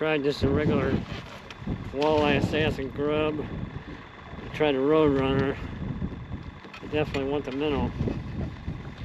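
A middle-aged man talks calmly and close by, outdoors.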